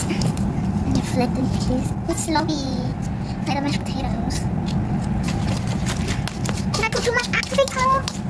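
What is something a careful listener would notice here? Hands squish and crackle sticky slime full of beads.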